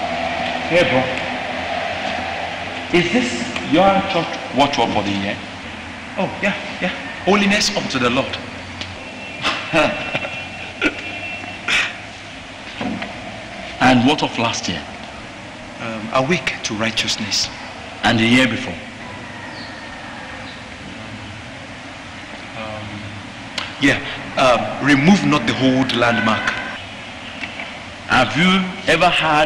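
A man speaks with animation in an echoing hall.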